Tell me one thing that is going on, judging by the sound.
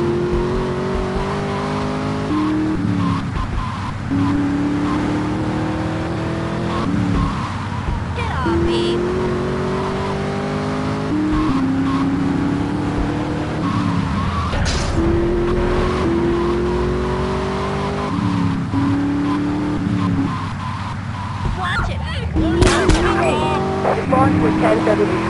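A car engine revs up steadily, dropping in pitch with each gear change.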